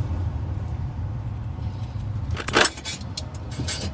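A phone receiver is lifted from its hook with a clatter.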